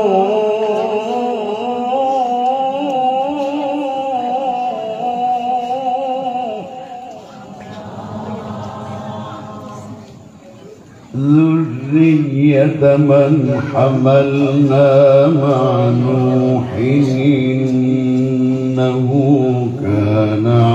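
An elderly man sings a long, wavering melody into a microphone, heard through a loudspeaker.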